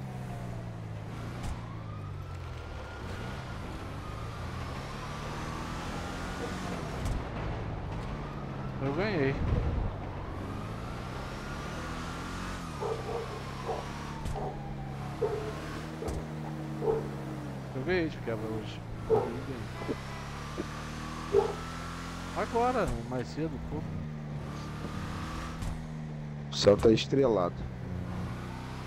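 A car engine hums steadily, rising and falling in pitch as the car speeds up and slows down.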